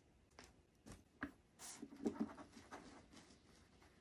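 A cloth rubs across a glass surface.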